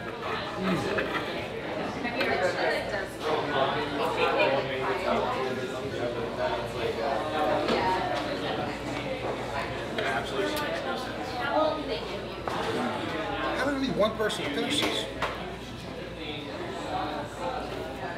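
Knives and forks scrape and clink on plates.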